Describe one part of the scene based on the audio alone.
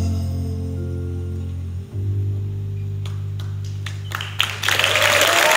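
A band plays a held final chord through loudspeakers in a large hall.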